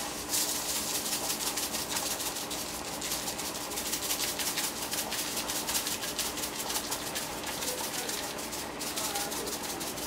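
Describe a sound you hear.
A pot of water boils and bubbles.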